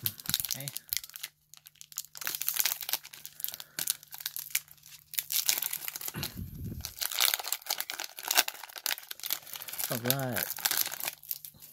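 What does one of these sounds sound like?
A foil wrapper crinkles and tears open.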